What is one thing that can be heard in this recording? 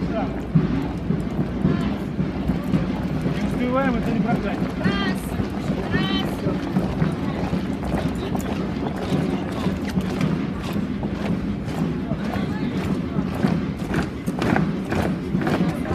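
Many heeled shoes march in step on pavement.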